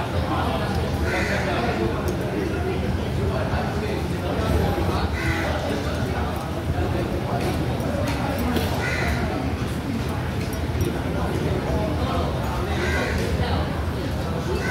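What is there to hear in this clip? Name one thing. Many voices chatter steadily in the background of a busy, echoing hall.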